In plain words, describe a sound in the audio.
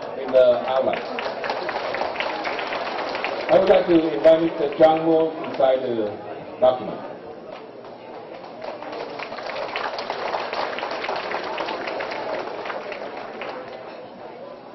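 A crowd applauds nearby.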